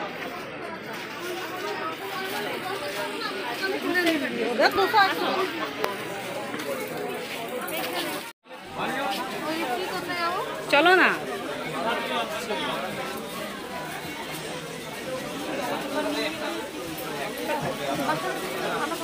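A crowd of women and men chatter all around.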